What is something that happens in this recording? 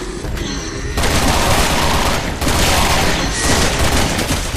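A gun fires loud shots.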